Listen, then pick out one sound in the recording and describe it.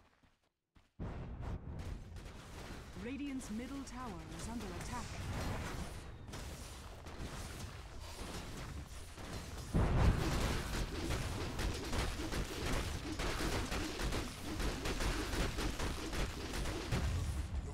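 Spell effects and attacks crackle and clash in a game battle.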